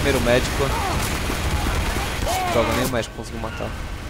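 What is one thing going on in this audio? A heavy machine gun fires in a loud rapid burst.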